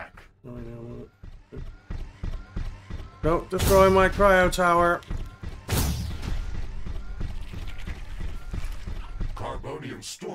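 Laser weapons fire in rapid bursts.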